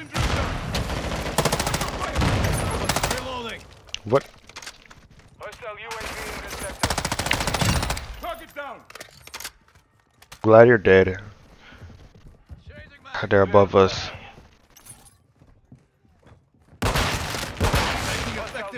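Rapid gunfire rattles in short, loud bursts.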